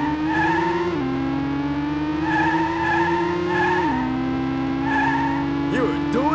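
A racing car engine drones steadily, dropping in pitch as the gears shift.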